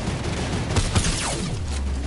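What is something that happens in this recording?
A blast bursts nearby.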